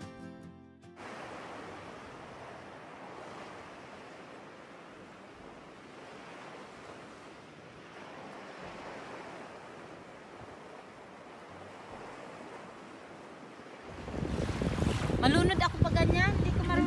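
Small waves lap gently against a shore.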